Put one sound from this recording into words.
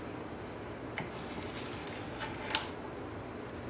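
A knife scrapes and taps against a baking tray.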